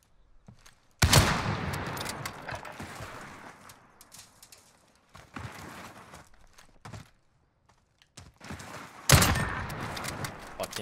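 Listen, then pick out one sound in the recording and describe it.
A rifle fires loud shots that echo and fade.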